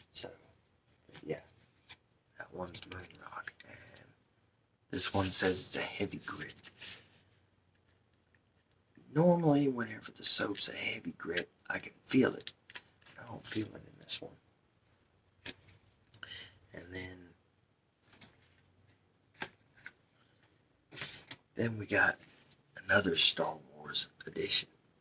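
An adult man speaks softly and in bursts, close to a condenser microphone.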